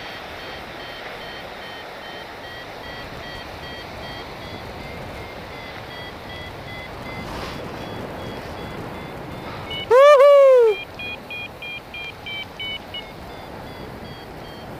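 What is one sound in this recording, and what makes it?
Wind rushes steadily past, outdoors.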